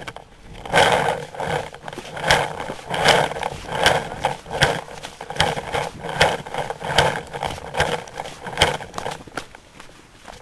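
Footsteps crunch steadily through dry grass and wood chips.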